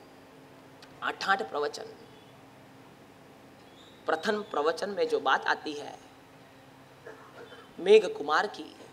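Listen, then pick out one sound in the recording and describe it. A young man speaks calmly through a microphone, with pauses.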